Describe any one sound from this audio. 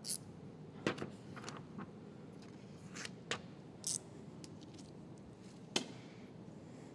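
Plastic film crinkles and snaps under handling.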